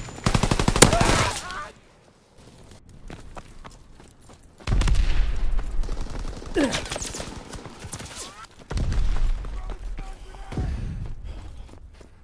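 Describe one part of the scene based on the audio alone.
A gun fires rapid, loud bursts close by.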